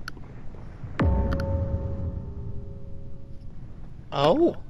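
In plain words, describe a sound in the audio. An electronic alert chimes with a low thud and a ringing tone.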